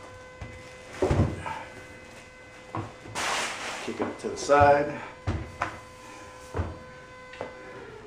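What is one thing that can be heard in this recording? A metal bin knocks and clatters as it is set in place.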